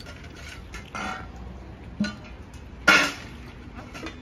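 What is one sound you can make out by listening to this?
A metal bowl clatters on a hard floor.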